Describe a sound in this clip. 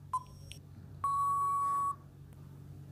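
A buzzer sounds briefly when time runs out.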